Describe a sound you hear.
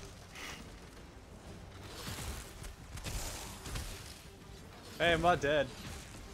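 Weapon blows land in a fight with a giant spider.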